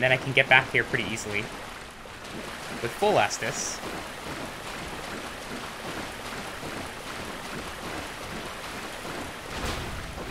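Footsteps splash quickly through shallow water.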